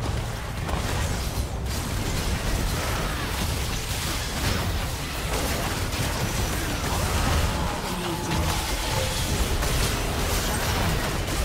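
Magical spell effects blast and crackle during a fast video game fight.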